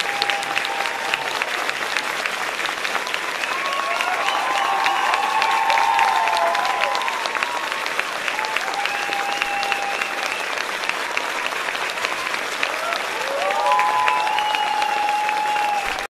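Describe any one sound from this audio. Young women call out and cheer in high voices through microphones.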